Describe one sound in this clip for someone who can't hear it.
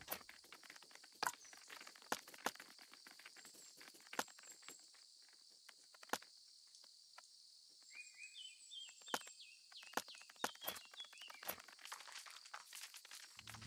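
Menu clicks tick sharply, one after another.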